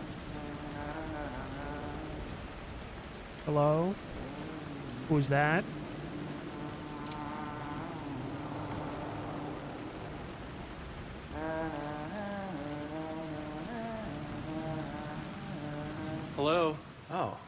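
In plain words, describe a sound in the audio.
A man hums a slow, wavering tune nearby.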